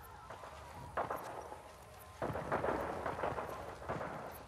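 Footsteps crunch quickly over dirt and dry grass.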